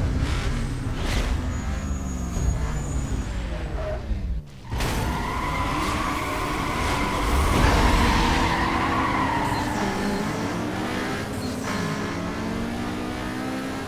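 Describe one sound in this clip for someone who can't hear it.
Car engines rev and roar loudly.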